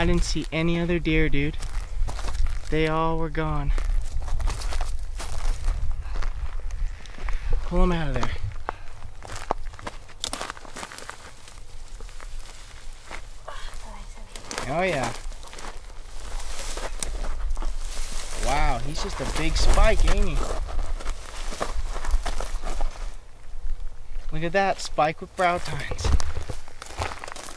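Dry brush rustles and crackles underfoot.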